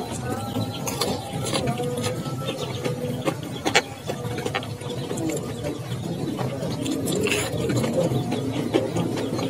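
A boy chews noisily with his mouth close by.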